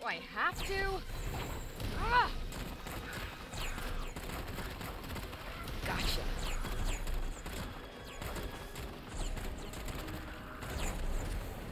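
Crows caw and flap overhead.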